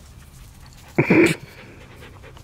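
A dog barks once nearby.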